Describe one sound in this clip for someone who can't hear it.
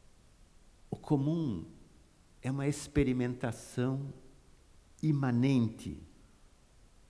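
A middle-aged man speaks into a microphone with animation, in short bursts.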